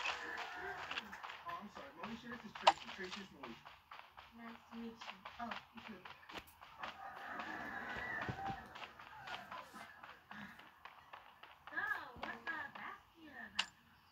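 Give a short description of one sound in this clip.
A boy talks with animation close to a microphone.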